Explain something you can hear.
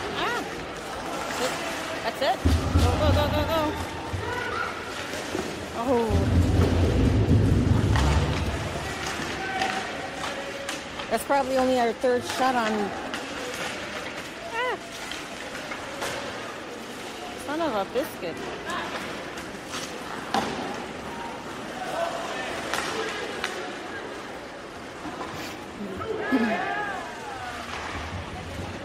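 Hockey sticks clack against a puck and the boards.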